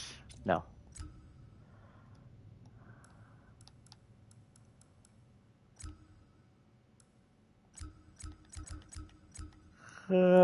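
Soft menu clicks tick again and again.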